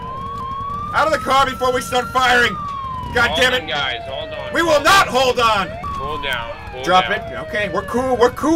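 A man shouts commands nearby.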